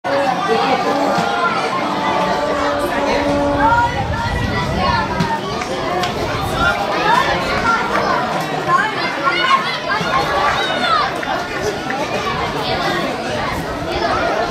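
Children shout and call out on a playing field.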